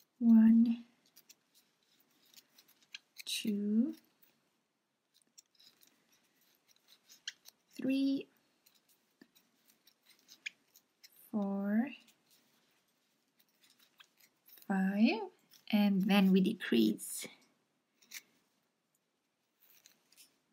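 A crochet hook softly scratches and pulls through yarn.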